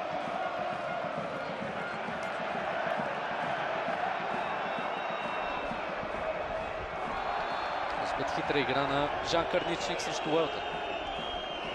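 A large crowd in a stadium roars and chants steadily.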